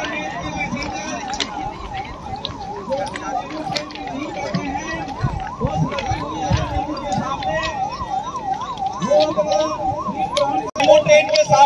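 A large outdoor crowd of men and women murmurs and chatters.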